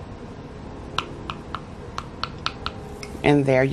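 A metal spoon taps and clinks against a glass bowl.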